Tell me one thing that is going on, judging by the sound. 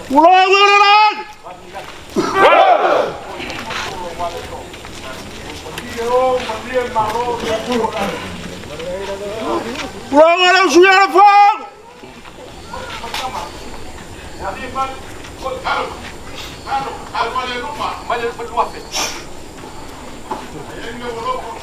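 A group of men and women talk quietly nearby.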